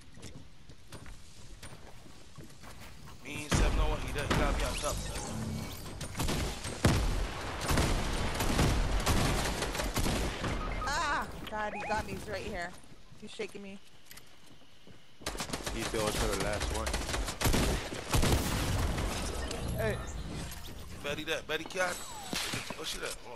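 Wooden walls crack and break under hits.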